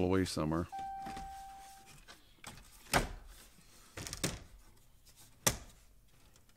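Plastic trim clicks and snaps into place.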